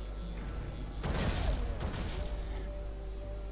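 An explosion bursts with a loud boom and rumble.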